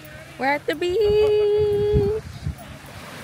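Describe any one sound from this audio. A young woman sings a long, steady note close by.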